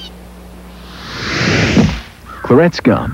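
A snowball flies in and bursts with a soft whooshing thud.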